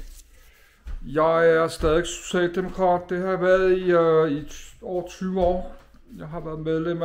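A middle-aged man talks calmly, close to a microphone.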